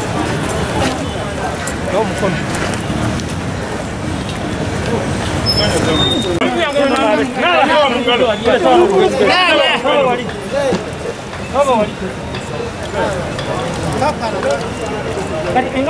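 A crowd of men talks and murmurs outdoors.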